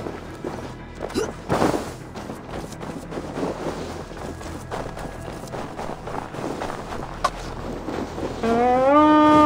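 Footsteps crunch through deep snow at a quick pace.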